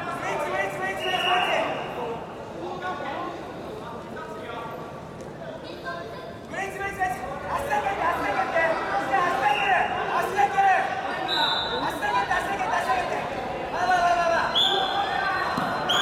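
Wrestlers' bodies scuff and thump against a padded mat.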